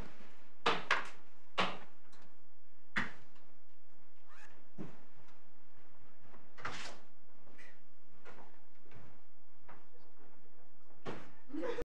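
Footsteps and knocks sound as people rise and move about.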